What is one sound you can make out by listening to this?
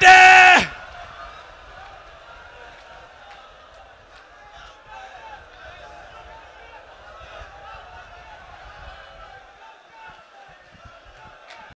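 A large crowd of men chants and cries out loudly.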